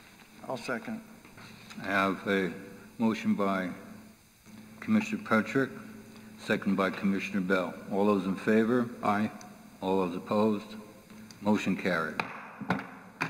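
An older man speaks calmly through a microphone in a large room.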